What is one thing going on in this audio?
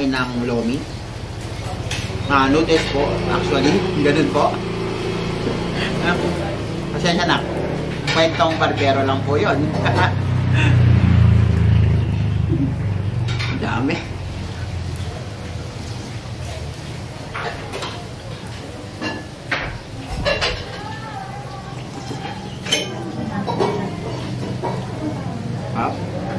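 A young man eats noisily, chewing and slurping close by.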